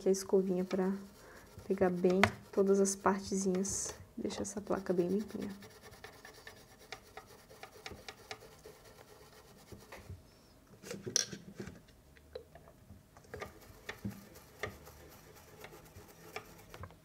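A small brush scrubs softly against a hard surface.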